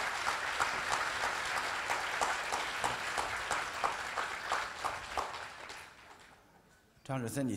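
An audience claps and slowly fades out.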